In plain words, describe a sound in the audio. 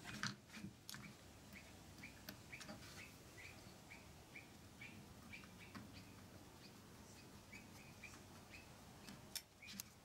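Small metal parts click as fingers fit them together.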